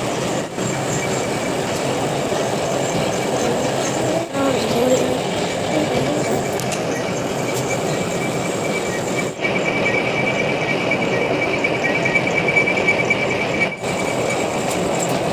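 A lathe motor runs with a steady whirring hum and a thin high whine.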